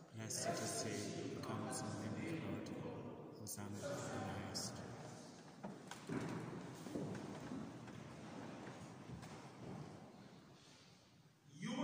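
A man speaks calmly and at a distance, heard with an echo in a large hall.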